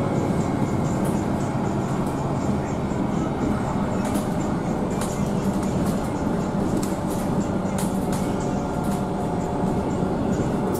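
Loose fittings inside a bus rattle and click.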